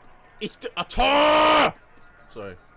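A young man lets out a long drawn-out shout.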